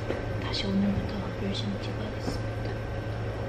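A young woman speaks softly and close to a microphone.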